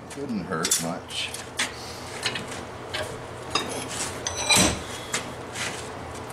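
Metal tools clank and scrape against each other.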